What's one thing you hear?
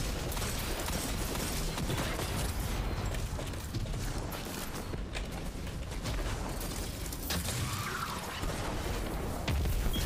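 A crackling energy blast hums and sizzles.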